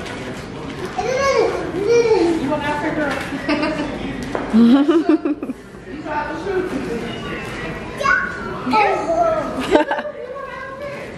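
Young women talk and laugh with animation nearby.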